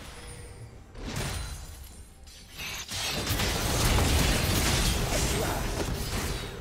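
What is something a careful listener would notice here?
Video game combat sounds burst and crackle as spells and blows clash.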